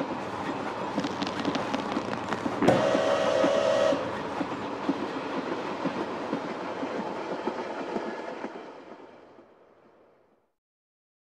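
A steam locomotive chugs along steadily, then slowly fades away.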